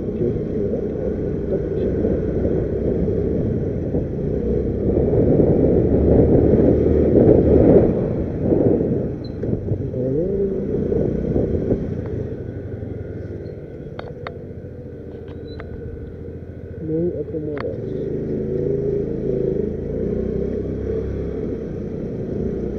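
A motorcycle engine hums steadily, rising and falling with speed.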